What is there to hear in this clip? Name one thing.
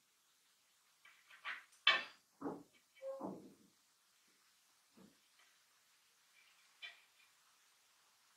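Hands pull thread through and against a metal hoop, rustling and tapping.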